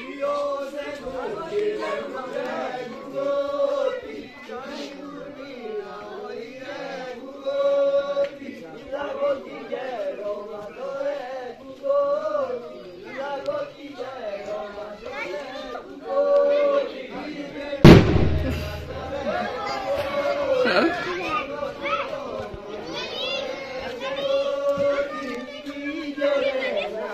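A group of men sing together in a chant.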